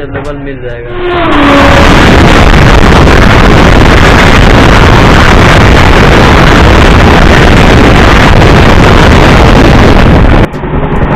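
Two passing trains roar loudly with rushing wind.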